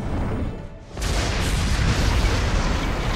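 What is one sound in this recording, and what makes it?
An energy blast roars and crackles.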